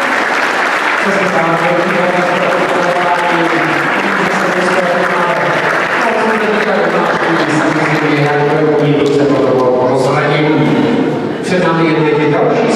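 Dance music plays over loudspeakers in a large echoing hall.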